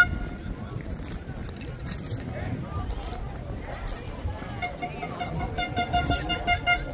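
A crowd chatters outdoors.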